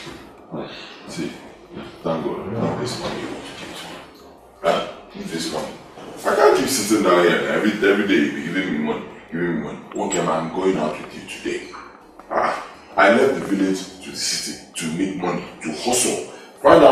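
A second man answers in a raised voice.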